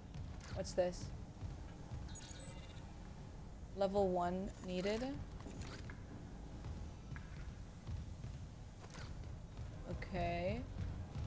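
A young woman speaks expressively into a close microphone.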